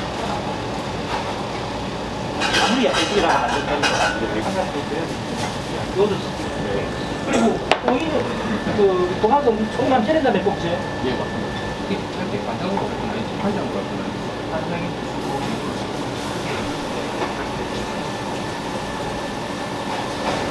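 Hands handle food on a bamboo mat with soft rustles and taps.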